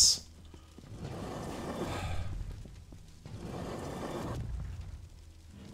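A man talks quietly into a close microphone.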